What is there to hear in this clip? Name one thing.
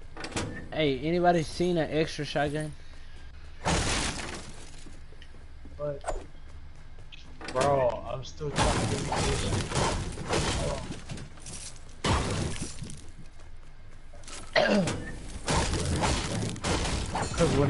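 A pickaxe strikes wood with sharp knocks.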